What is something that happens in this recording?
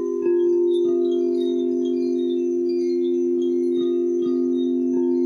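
Singing bowls ring with a steady, humming drone.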